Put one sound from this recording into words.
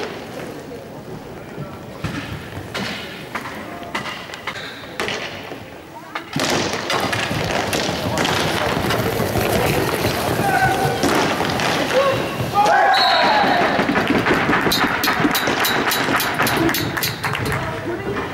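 Hockey sticks clack sharply against a ball in an echoing hall.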